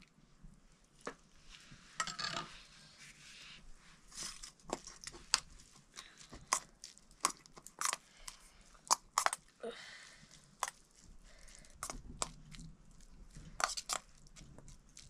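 A metal spoon clinks and scrapes against a metal bowl.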